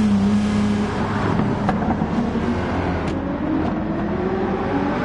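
Tyres squeal on asphalt through a bend.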